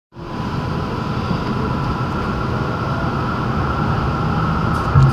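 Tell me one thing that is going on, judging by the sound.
Traffic hums and rumbles nearby.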